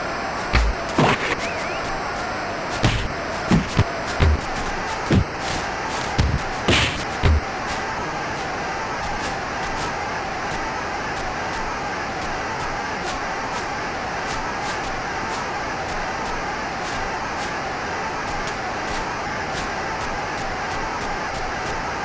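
A crowd roars steadily.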